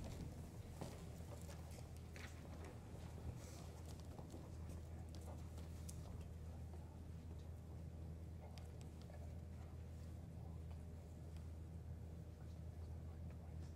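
A choir sings softly in a large hall.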